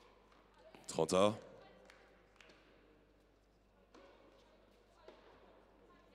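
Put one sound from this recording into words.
A tennis ball is struck sharply by a racket, back and forth.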